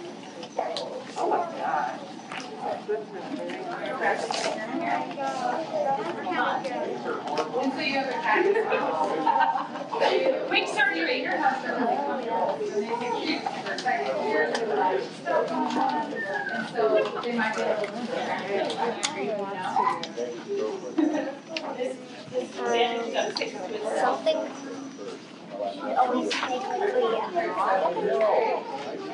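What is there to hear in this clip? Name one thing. Children and adults chatter nearby.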